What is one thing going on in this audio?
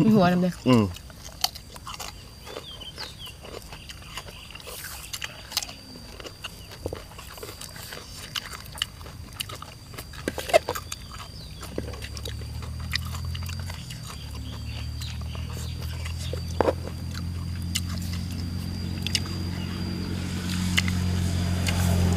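People crunch and chew food close by.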